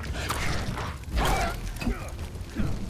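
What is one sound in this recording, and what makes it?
A wolf howls.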